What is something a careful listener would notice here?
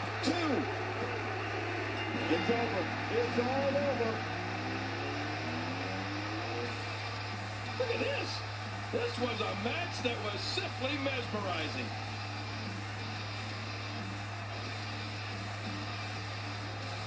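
A crowd cheers and roars through a television speaker.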